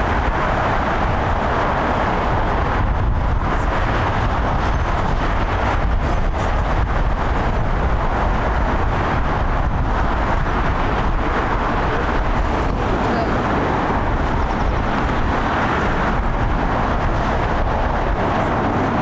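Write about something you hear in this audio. A jet airliner's engines roar steadily as it taxis past.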